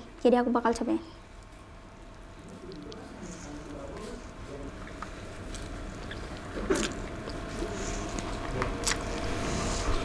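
Noodles rustle and squish as a hand grabs them.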